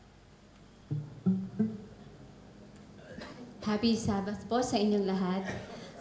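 A young woman speaks into a microphone through a loudspeaker.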